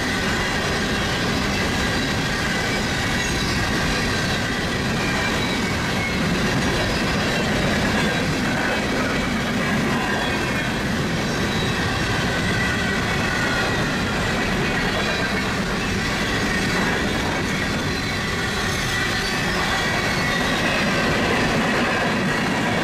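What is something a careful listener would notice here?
A long freight train rumbles and clatters steadily along the tracks.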